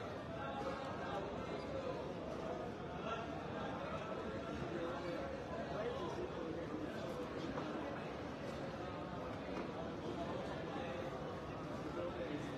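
A crowd of men murmurs and chants prayers in the distance outdoors.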